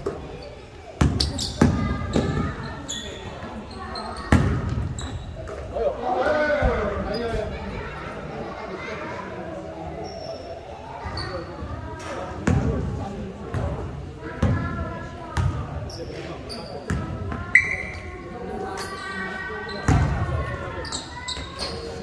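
A basketball bounces loudly on a hard floor in a large echoing hall.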